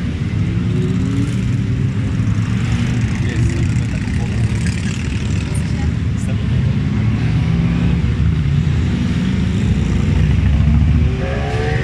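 A large group of motorcycle engines rumbles and drones as the riders pass.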